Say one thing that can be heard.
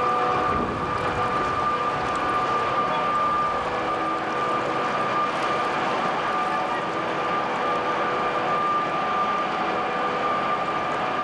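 Heavy machinery hums steadily with a high whine.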